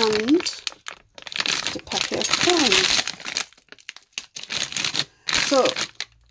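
A plastic packet crinkles and rustles as it is handled.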